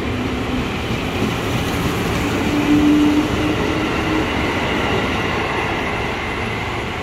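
A train rumbles and clatters past close by.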